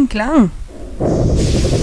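A magical energy burst whooshes and hums loudly.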